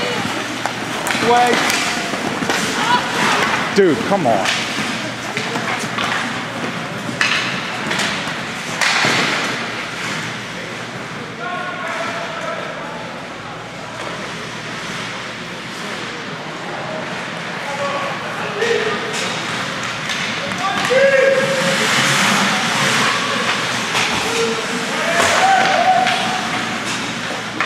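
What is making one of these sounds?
Skates scrape and glide across ice in a large echoing rink.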